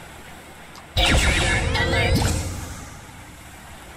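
A cartoon bomb bursts with a loud boom and a sparkling fizz.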